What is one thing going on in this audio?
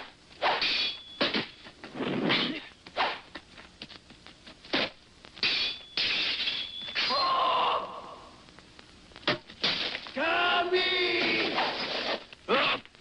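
A creature growls and shouts loudly.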